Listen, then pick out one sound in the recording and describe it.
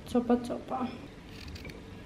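A knife cuts through a raw carrot onto a plate.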